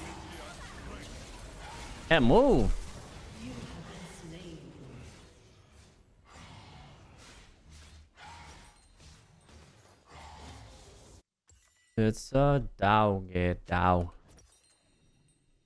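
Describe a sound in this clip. A man talks close into a microphone in a casual way.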